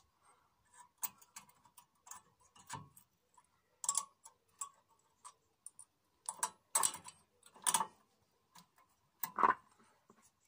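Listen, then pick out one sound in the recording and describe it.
Metal parts click and scrape as a brake pad is fitted into place by hand.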